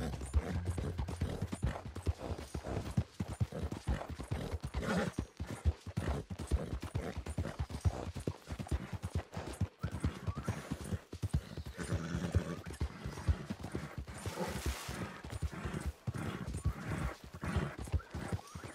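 Horse hooves thud in a quick, steady gallop over soft ground.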